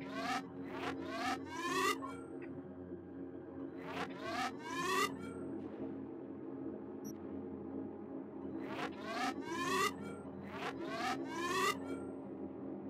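Short electronic tones sweep upward in quick bursts.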